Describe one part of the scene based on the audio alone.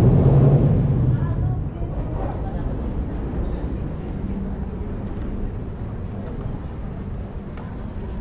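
Voices of a crowd murmur at a distance outdoors.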